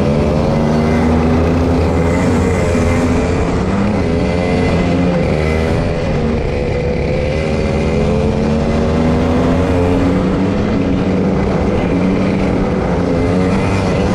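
Kart engines buzz loudly and rise and fall in pitch close by.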